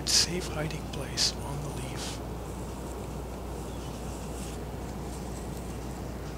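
Leaves rustle softly as fingers handle them.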